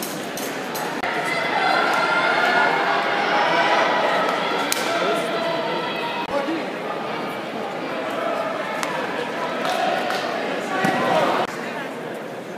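Spectators cheer and shout after a throw.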